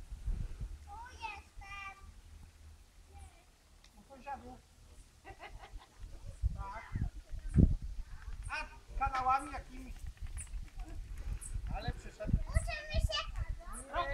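Young children call out and talk nearby outdoors.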